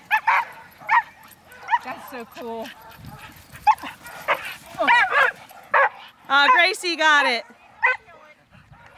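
A small dog barks and yelps in short, high bursts outdoors.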